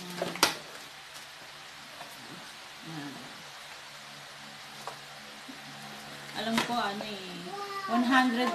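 A cardboard box rustles and taps as it is handled.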